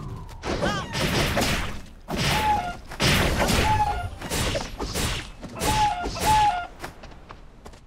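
Weapons clash and strike in quick bursts of combat.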